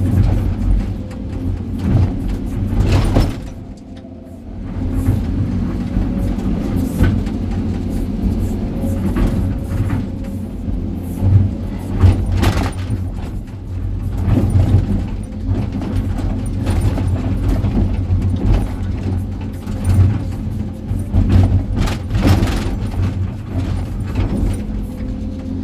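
Rocks and soil scrape and clatter in a metal bucket.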